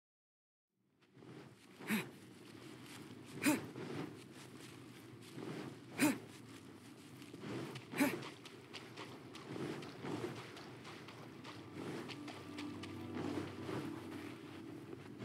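Footsteps pad quickly across sand.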